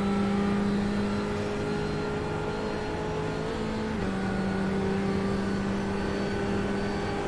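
A racing car engine drones steadily at high revs, shifting pitch as it changes gear.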